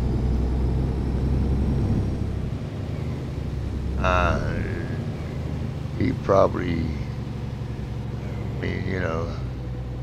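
Rain patters on a windshield.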